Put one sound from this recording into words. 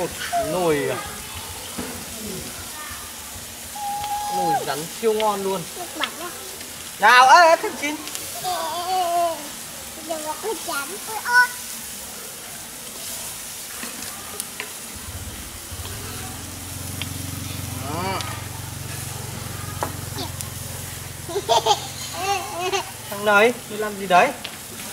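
Food sizzles in a pan over a wood fire.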